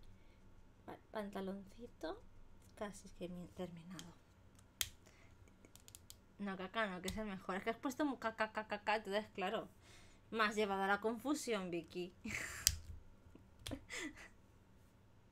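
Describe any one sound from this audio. A woman talks with animation, close to a microphone.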